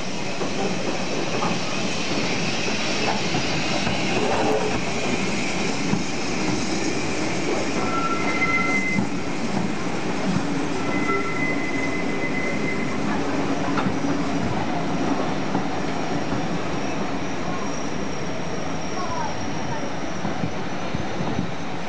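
Train carriages rumble and clatter steadily over the rails.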